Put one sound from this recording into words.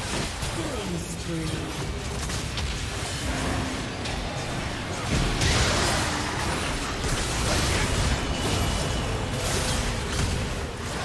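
Game battle effects crackle and burst as spells and attacks clash.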